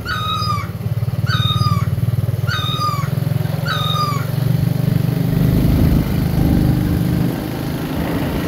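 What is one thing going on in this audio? A motorbike engine approaches and passes close by.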